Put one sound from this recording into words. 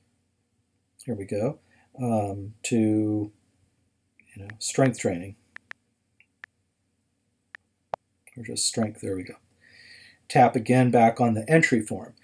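A middle-aged man speaks calmly, close to the microphone, with pauses.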